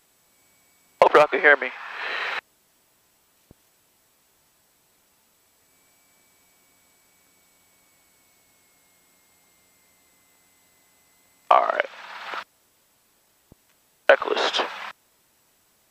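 A young man speaks briefly over a headset intercom.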